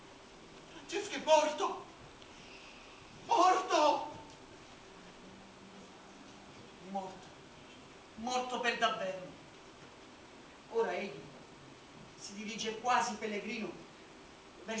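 A man speaks loudly and dramatically in bursts, echoing in a large hall.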